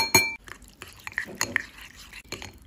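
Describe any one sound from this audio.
A spoon clinks and stirs in a glass bowl.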